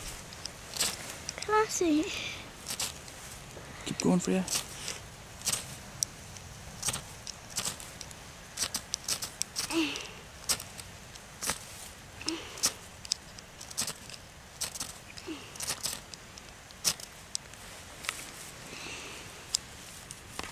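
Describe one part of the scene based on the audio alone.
Small shears snip repeatedly through dry grass.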